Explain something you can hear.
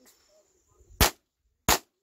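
A handgun fires two sharp, loud shots outdoors.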